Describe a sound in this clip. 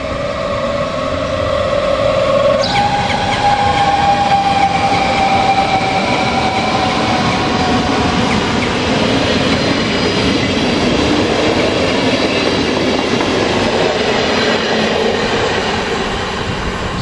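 A train rumbles and clatters past close by.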